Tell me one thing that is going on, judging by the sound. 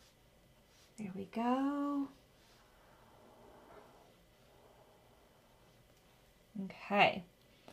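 A woman speaks briefly and warmly, close by.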